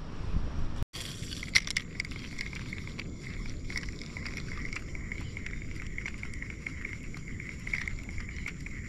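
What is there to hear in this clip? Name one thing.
Water laps gently against a small boat.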